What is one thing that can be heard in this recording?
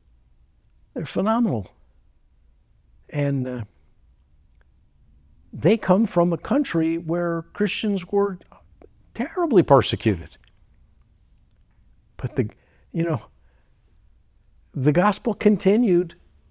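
An elderly man speaks calmly and with animation, close by.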